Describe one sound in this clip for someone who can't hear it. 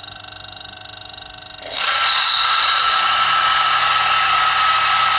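A coffee grinder motor whirs with a steady high hum.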